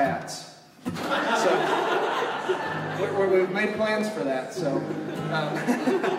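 A string band starts playing a lively tune.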